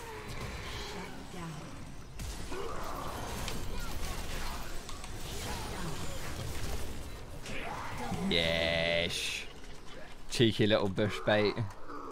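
Game sound effects of spells and hits ring out in quick bursts.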